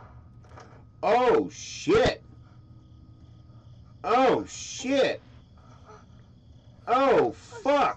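A young man shouts loudly several times.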